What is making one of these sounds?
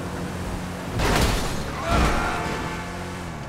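A vehicle crashes into a van with a loud metallic bang.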